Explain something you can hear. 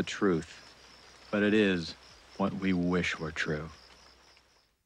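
A man speaks softly up close.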